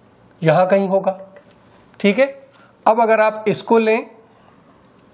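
A man speaks calmly and clearly close to a microphone.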